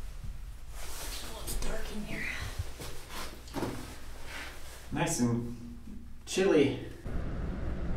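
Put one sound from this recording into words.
A man speaks in a small echoing room.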